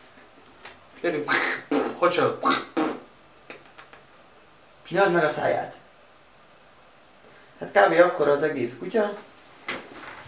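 A man speaks softly and playfully to a small dog.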